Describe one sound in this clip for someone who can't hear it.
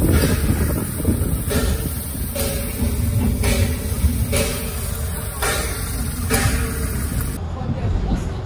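A steam locomotive hisses steadily close by.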